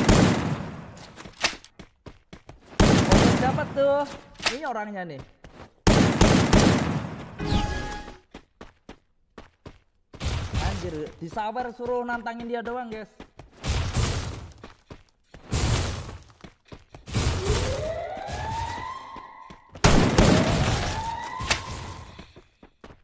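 A boy talks with animation close to a microphone.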